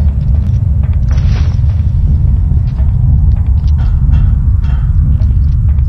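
Footsteps clank on a metal floor in an echoing tunnel.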